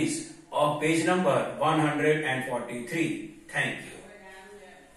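A man speaks clearly and calmly close by.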